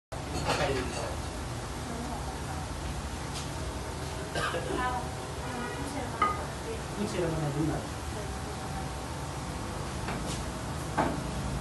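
Food sizzles while frying in pans.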